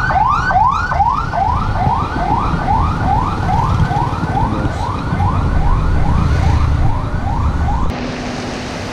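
An ambulance siren yelps rapidly nearby.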